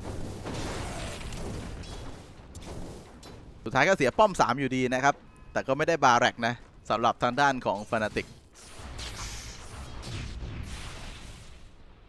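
Battle sound effects clash and crackle in a game.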